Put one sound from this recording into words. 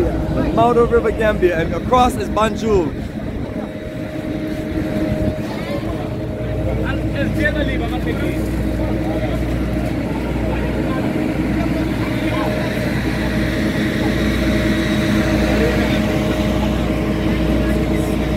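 A ship's engine hums steadily.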